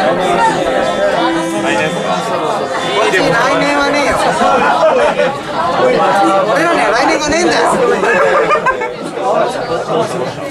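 A rock band plays loudly.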